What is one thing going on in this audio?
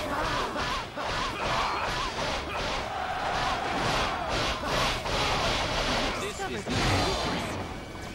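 Swords clash and slash in rapid bursts amid battle noise.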